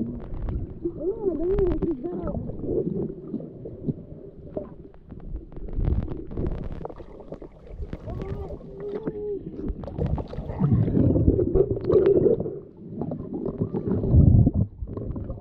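Water rumbles and swirls, heard muffled from underwater.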